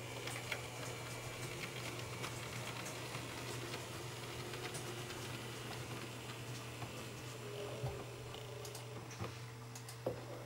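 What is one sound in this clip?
A small model train motor whirs softly as the train rolls along the track.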